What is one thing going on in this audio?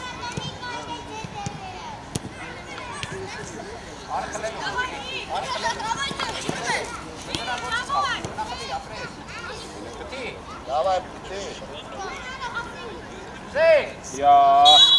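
Young players shout and call out across an open field.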